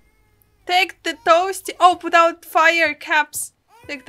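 A young woman laughs close to a microphone.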